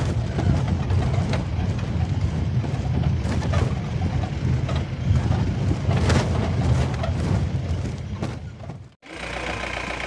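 A vehicle engine rumbles as it drives over a rough dirt track.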